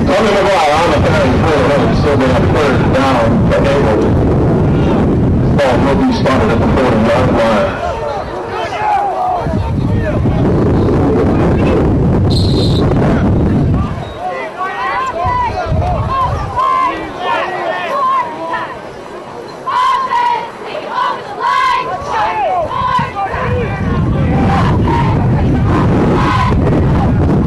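A crowd of people shouts and cheers outdoors.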